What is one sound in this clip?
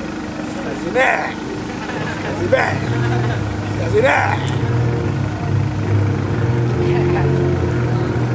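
A man shouts loudly in bursts.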